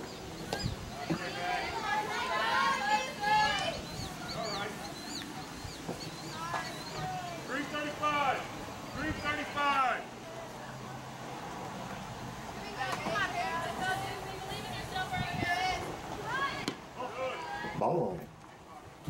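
A crowd of spectators cheers and calls out outdoors.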